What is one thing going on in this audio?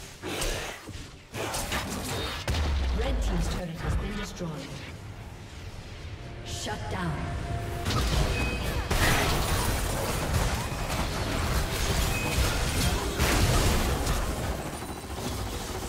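Fantasy game battle effects whoosh, clash and boom in quick succession.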